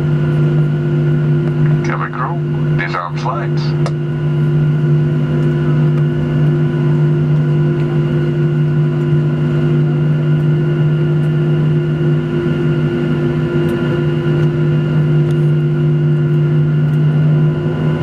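A jet engine hums steadily from inside a plane cabin.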